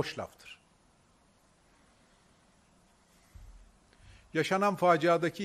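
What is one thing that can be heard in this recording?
A middle-aged man speaks forcefully into a microphone, with pauses.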